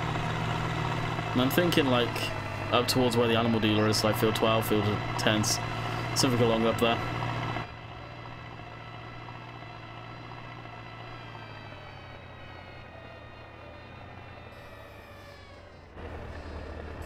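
A loader engine hums steadily and slowly winds down.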